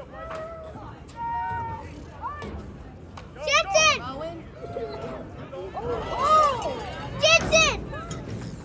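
Spectators shout and cheer loudly outdoors.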